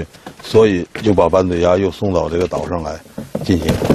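A metal crate door rattles as it is opened.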